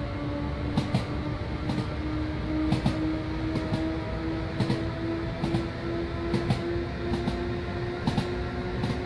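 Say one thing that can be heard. An electric train motor hums with a steady, slowly rising whine.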